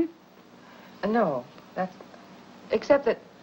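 An older woman answers in a firm voice.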